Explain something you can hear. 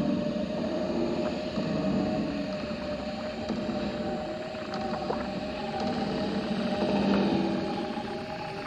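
A television hisses softly with static.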